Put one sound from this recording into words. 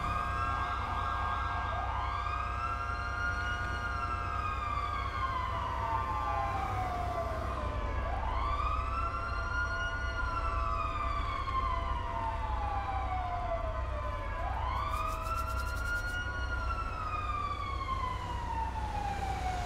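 A police siren wails, rising and falling slowly, close by.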